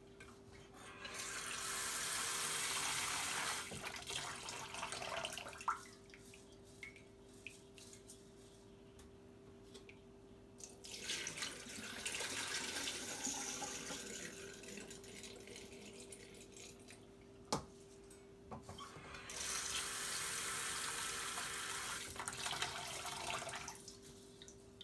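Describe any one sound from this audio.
Water runs from a tap and splashes into a bowl.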